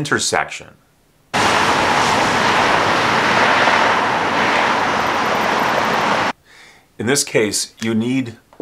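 A middle-aged man speaks calmly and clearly, close by.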